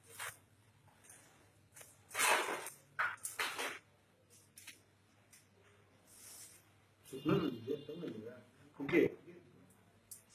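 Paper rustles and crinkles as bundles are handled.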